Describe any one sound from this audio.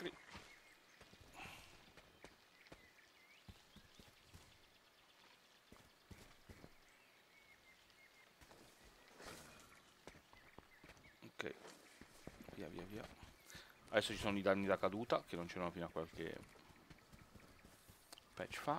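Footsteps pad softly through grass.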